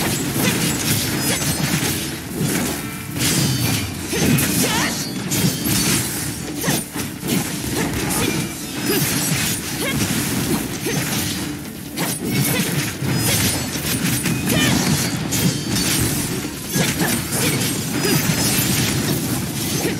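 Video game sword slashes and electric blasts crash rapidly and loudly.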